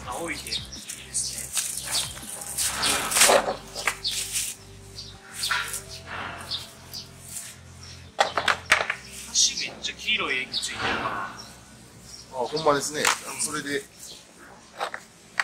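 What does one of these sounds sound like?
Plastic sheeting crinkles and rustles.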